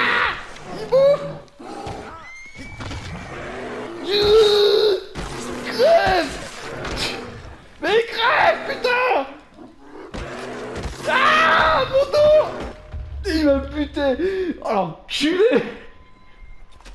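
A bear roars and growls as it attacks.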